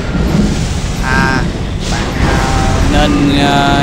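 A sword swings with a sharp magical whoosh.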